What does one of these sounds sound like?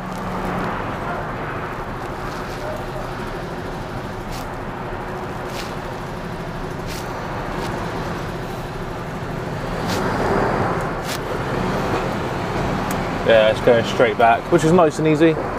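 A vehicle engine hums steadily as it drives slowly.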